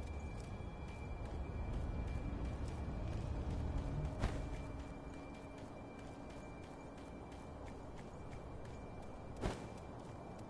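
Footsteps patter quickly over ground and stone.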